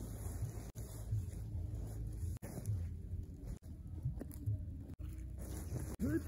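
A plastic sack rustles as it is filled and handled.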